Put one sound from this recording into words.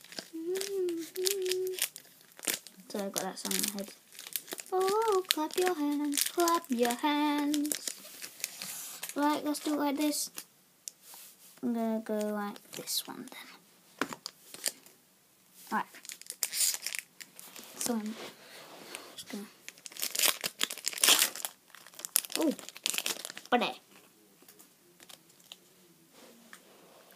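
Foil card packs rustle and crinkle as hands handle them.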